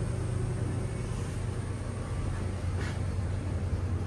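Elevator doors slide shut.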